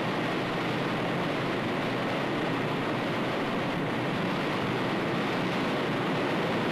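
A strong blast of air or spray hisses steadily.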